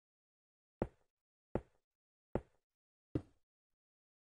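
Blocks thud softly as they are placed one after another.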